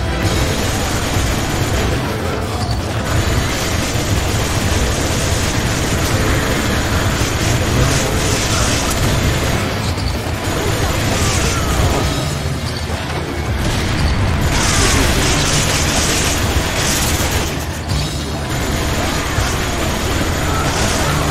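A rapid-firing machine gun rattles in bursts.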